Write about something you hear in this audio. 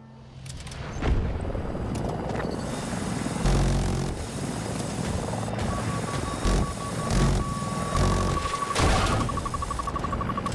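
A heavy machine gun fires in loud, rapid bursts.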